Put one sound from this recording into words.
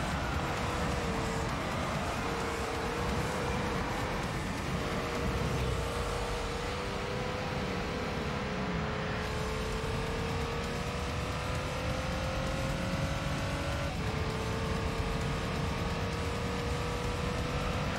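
A racing car engine whines, rising steadily in pitch and dropping briefly as it shifts gear.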